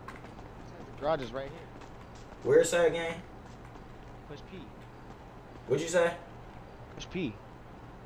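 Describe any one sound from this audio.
A young man speaks in short, animated bursts close to a microphone.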